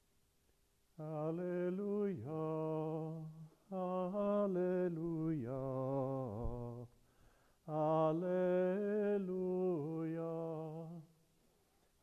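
An elderly man chants in a slow, sung voice in a large echoing hall.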